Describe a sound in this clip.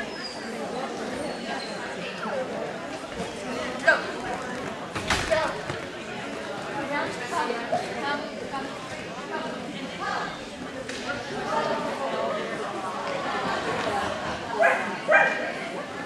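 An older woman calls out commands to a dog in a large echoing hall.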